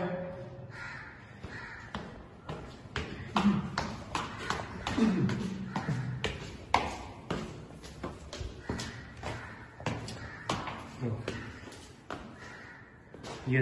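Footsteps tap on hard stone stairs.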